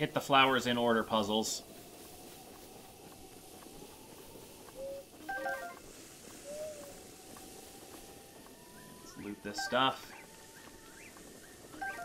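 Footsteps rustle through long grass.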